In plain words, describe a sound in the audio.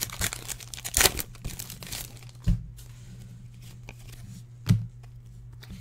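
A foil card wrapper crinkles and tears.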